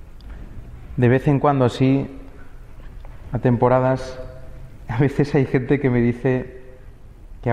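A young man chants in a slow, drawn-out voice through a microphone, in a reverberant hall.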